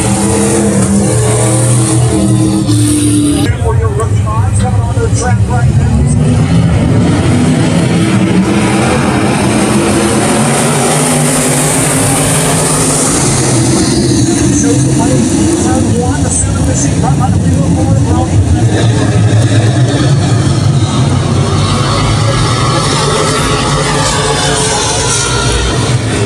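Race car engines roar loudly as cars speed around a dirt track.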